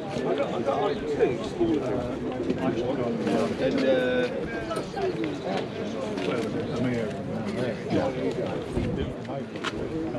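A man talks nearby in a casual, lively way.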